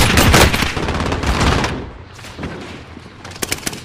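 Gunshots fire rapidly in bursts.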